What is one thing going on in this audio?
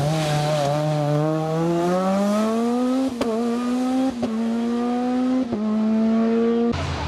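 A rally car engine screams as it accelerates away up the road.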